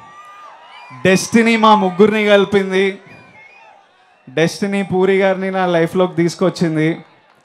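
A young man sings loudly into a microphone over loudspeakers.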